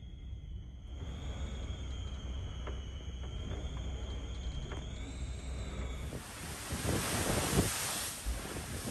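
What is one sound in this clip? Rough sea waves churn and splash below.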